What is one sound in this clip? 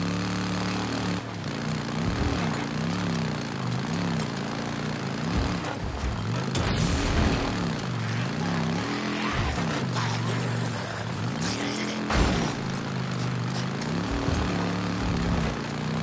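Tyres crunch over gravel and dirt.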